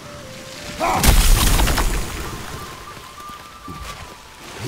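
A loud icy blast bursts and crackles.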